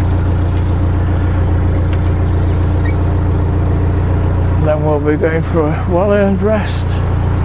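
A boat engine chugs steadily close by.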